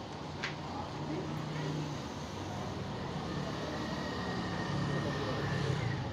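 A motorbike rides past.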